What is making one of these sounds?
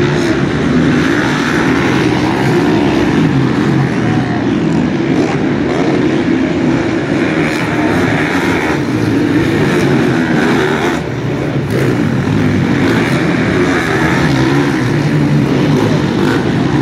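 Motorcycle engines roar and whine from a nearby dirt track.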